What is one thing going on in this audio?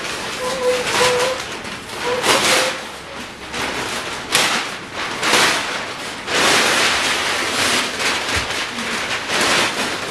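Thick paper rustles and crinkles as it is pulled and folded.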